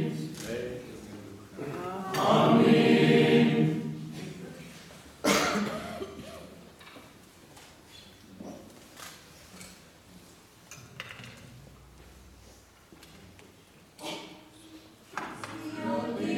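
An elderly man chants a prayer in a large echoing room.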